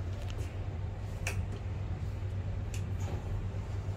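A finger presses an elevator button with a soft click.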